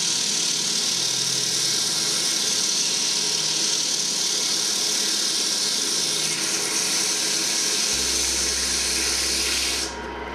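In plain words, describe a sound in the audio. Sandpaper hisses against spinning wood.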